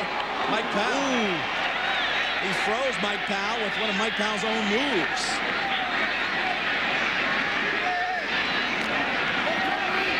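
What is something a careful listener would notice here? A large crowd roars and cheers steadily outdoors.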